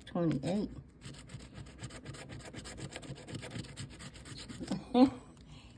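A coin scrapes quickly across a scratch card.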